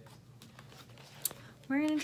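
Paper rustles close by.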